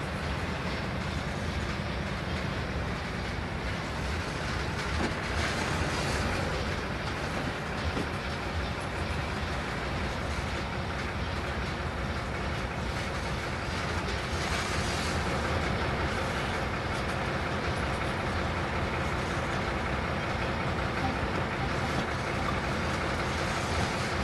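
Train wheels roll and rattle over the rails.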